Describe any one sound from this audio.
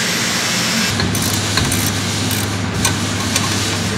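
A wrench clicks against a metal bolt.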